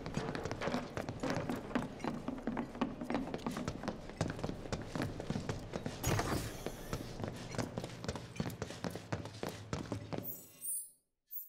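Footsteps clatter quickly across a hard floor.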